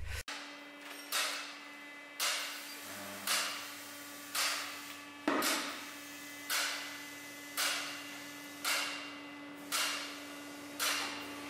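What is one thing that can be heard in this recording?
Air hisses in short, regular bursts as a tyre is pumped up.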